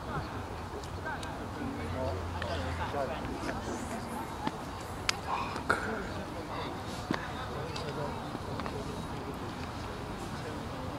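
Men standing nearby chat calmly outdoors.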